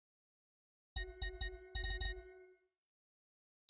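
Menu selection tones chime.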